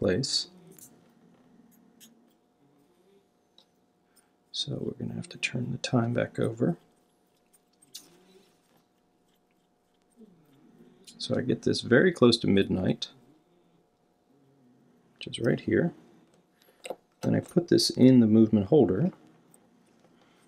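Small watch parts click softly under fingertips.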